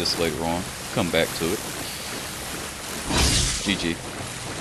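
Electricity crackles and zaps in short bursts.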